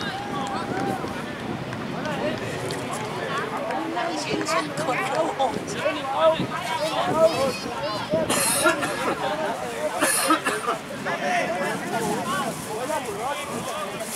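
Young men shout and call out across an open outdoor field.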